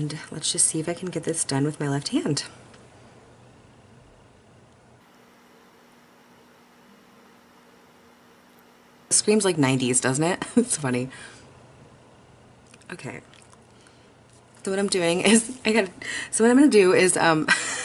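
A woman talks calmly and close to a microphone, in bursts with pauses.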